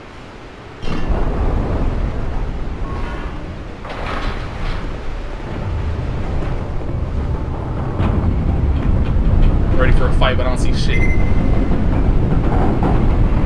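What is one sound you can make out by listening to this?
A heavy iron gate grinds and rumbles.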